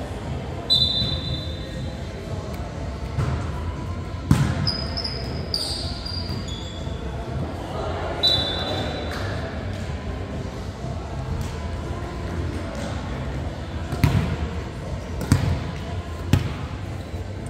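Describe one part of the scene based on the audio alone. A volleyball is struck and slaps in an echoing gym.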